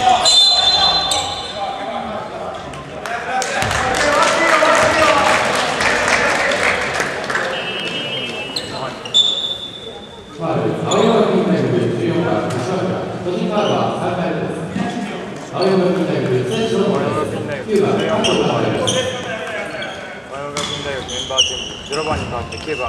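A crowd of spectators cheers and chatters in a large echoing gym.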